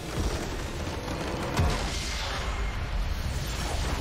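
A structure explodes with a loud crash.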